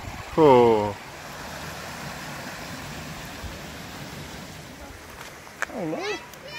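A stream rushes steadily over rocks nearby.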